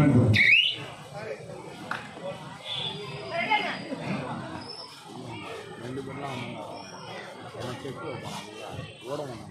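Players' feet thud and scuff on the court mat.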